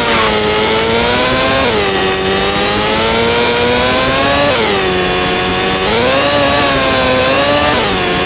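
A racing car engine whines at high revs, dropping in pitch at each gear shift and climbing again.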